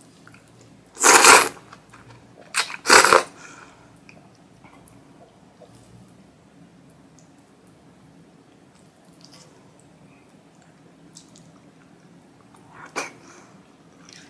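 A young woman slurps noodles loudly and close up.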